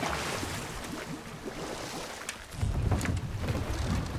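Oars splash through water.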